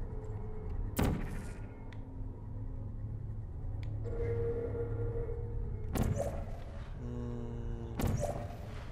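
A portal gun fires with a sharp electric zap.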